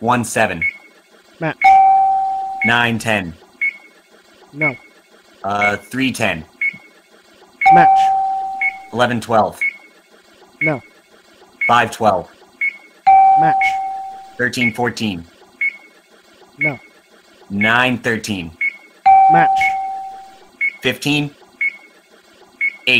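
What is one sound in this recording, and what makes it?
Short electronic tones ring out again and again.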